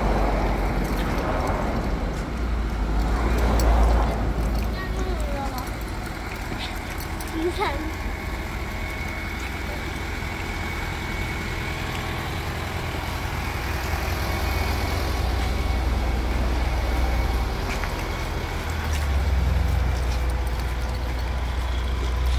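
Footsteps walk on a paved sidewalk outdoors.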